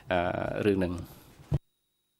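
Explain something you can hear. A man speaks briefly through a microphone.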